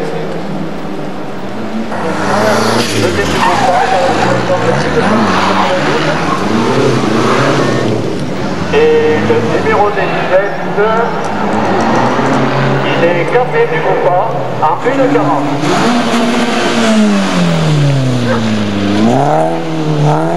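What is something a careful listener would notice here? A car engine revs hard and rises and falls in pitch as it races past.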